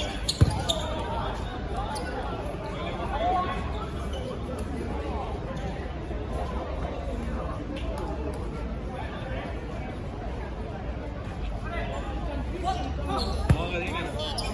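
Young men and women chatter and call out across an open outdoor court.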